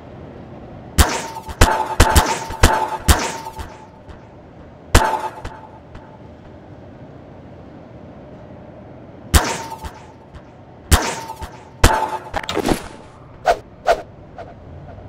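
A tool gun zaps in quick bursts.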